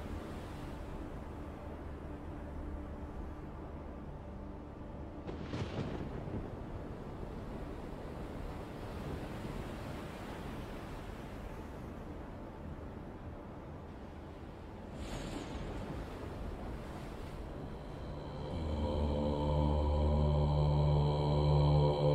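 Rough sea waves roll and crash.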